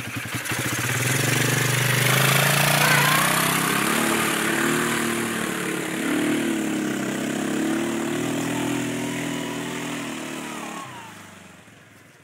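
A second quad bike drives off through mud and fades into the distance.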